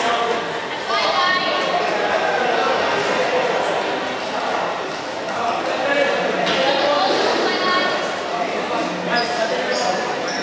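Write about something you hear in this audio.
A crowd of young people shouts and chatters in a large echoing hall.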